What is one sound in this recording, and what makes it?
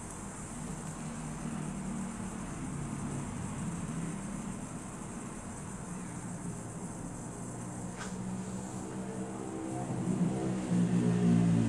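A young woman speaks softly close to the microphone.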